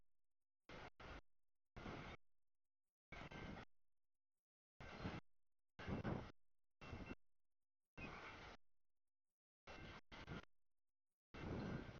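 A freight train rolls past, its wheels rumbling and clattering on the rails.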